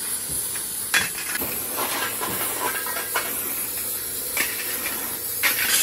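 Metal parts clank against each other.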